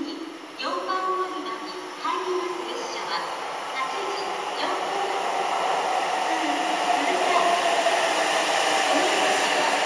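A train approaches and rolls into the station with a rising rumble.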